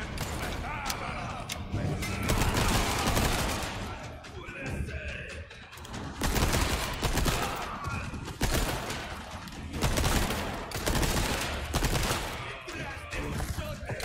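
Gunshots ring out in a reverberant space.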